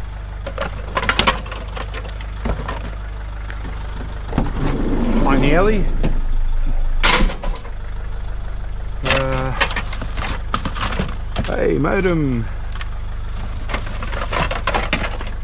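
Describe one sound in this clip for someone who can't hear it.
Hard plastic objects knock and rattle as they are handled.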